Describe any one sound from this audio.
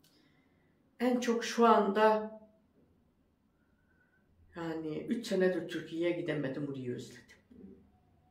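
An elderly woman speaks calmly and close by, with pauses.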